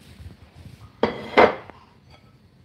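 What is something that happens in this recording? A metal fork scrapes and clinks against a glass bowl.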